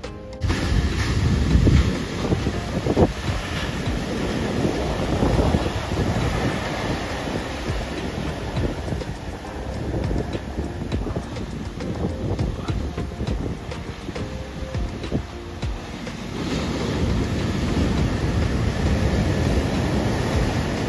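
Foamy surf rushes and hisses over the sand.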